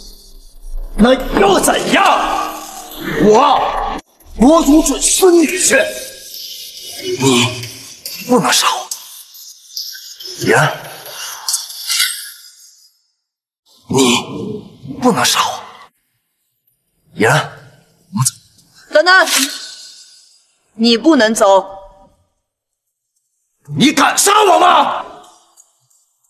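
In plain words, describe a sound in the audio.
A young man shouts and pleads with animation.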